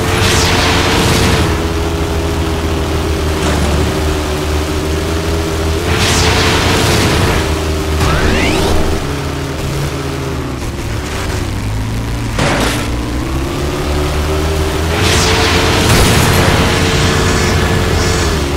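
Tyres crunch and skid over dirt.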